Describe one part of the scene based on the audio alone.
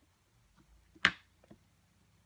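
A small block knocks down onto a table.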